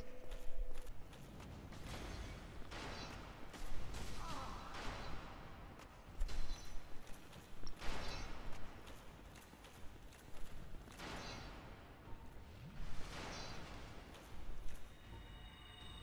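Heavy armored footsteps clank across a stone floor.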